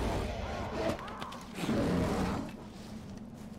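A large animal snarls and growls as it attacks.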